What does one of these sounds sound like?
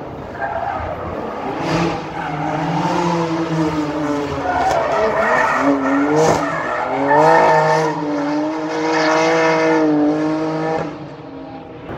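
A racing car engine roars and revs loudly as the car speeds past.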